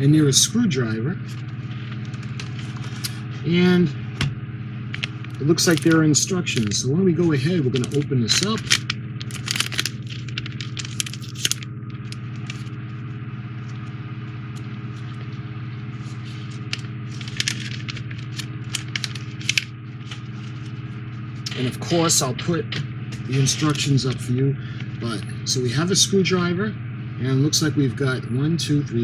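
A plastic bag crinkles in someone's hands.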